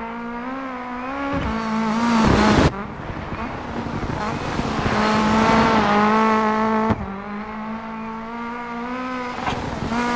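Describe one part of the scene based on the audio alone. Tyres crunch and slide on snow.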